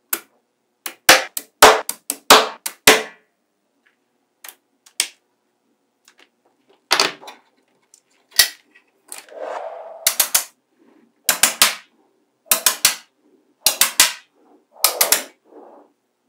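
Small steel magnetic balls click and snap together.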